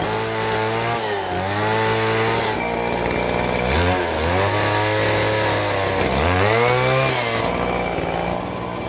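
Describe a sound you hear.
A gas chainsaw cuts into a timber beam, its engine revving up and down.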